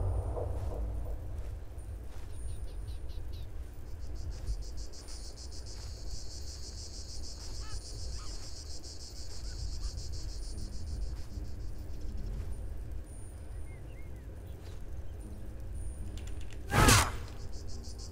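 A low wind rumbles outdoors.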